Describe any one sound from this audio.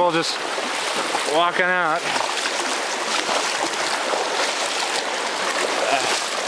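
A swollen river rushes and churns loudly nearby.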